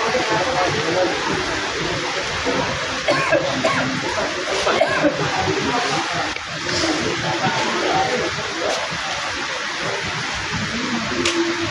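Plastic game pieces click on a wooden board.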